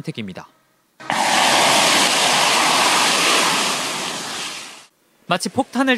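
A large fire bursts up with a loud whoosh and roars steadily.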